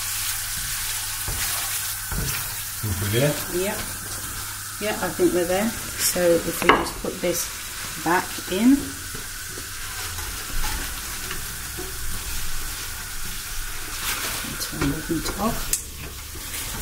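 Food sizzles steadily in hot oil in a pan.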